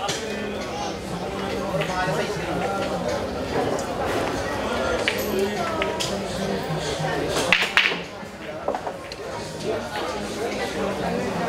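A crowd of onlookers murmurs and chatters indoors.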